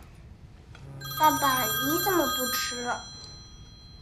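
A young boy asks a question in a clear voice.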